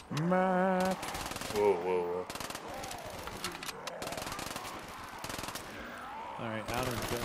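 A gun fires rapid shots.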